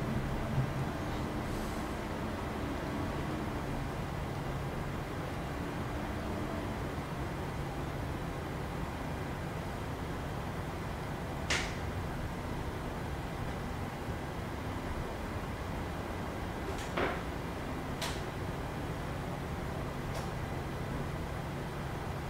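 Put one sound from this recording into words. Jet engines hum steadily at low idle.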